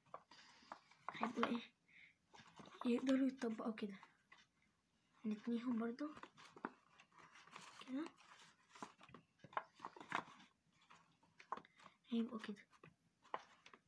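A young boy speaks close to the microphone.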